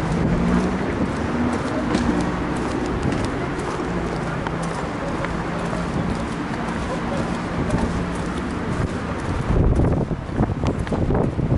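Wind buffets the microphone outdoors with a steady low rumble.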